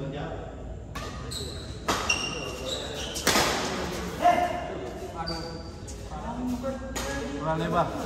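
Badminton rackets strike a shuttlecock.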